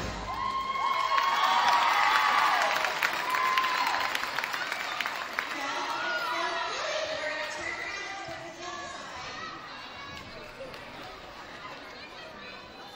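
A crowd of young girls shouts and cheers in a large echoing hall, loudest at first and then fading.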